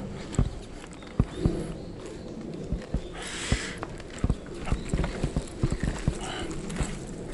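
Footsteps crunch on a dirt and gravel path outdoors.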